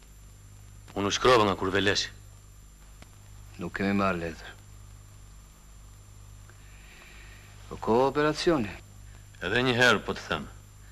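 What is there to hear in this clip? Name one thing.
An older man answers gruffly.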